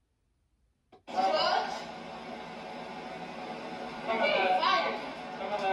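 A television plays a show with voices through its speaker.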